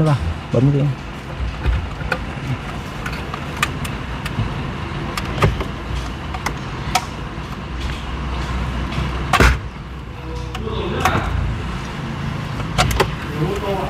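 Plastic connectors click and rattle as wiring is unplugged.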